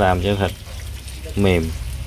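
Liquid pours into a pot of meat.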